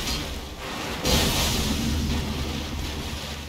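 A heavy blade strikes with a wet slash.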